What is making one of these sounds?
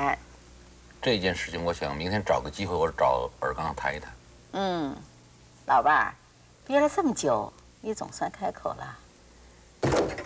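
An elderly woman speaks gently nearby.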